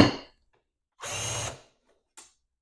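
A cordless drill whirs briefly as it bores into metal.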